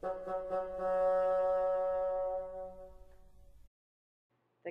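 A bassoon plays a sustained note that fades away.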